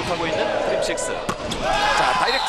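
A volleyball is struck hard.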